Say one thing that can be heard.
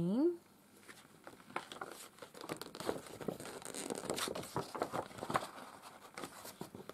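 Paper rustles and crinkles as hands handle it, close by.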